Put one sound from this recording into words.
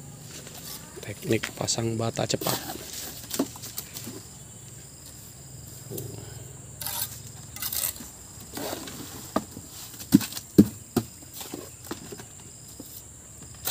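A trowel taps and scrapes on bricks and mortar.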